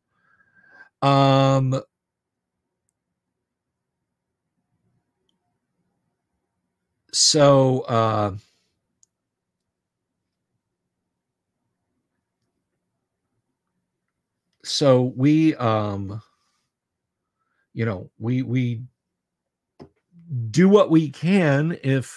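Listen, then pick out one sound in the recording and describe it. An older man speaks into a microphone in short bursts, calmly, close up.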